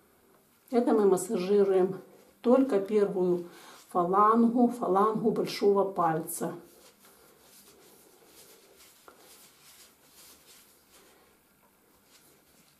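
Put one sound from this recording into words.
Hands softly rub and knead bare skin.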